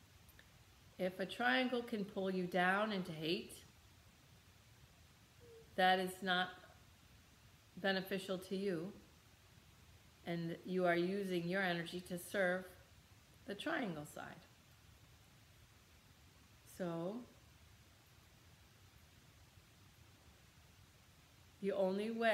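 A middle-aged woman speaks calmly and slowly, close by, with long pauses.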